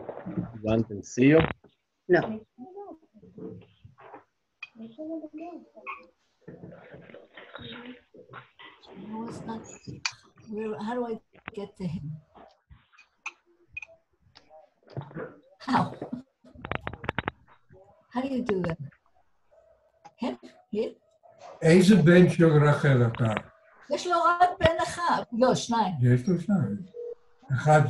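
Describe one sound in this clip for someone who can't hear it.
Several men and women talk in turn over an online call, sounding tinny.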